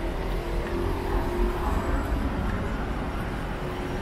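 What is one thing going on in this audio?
A car drives past on the street.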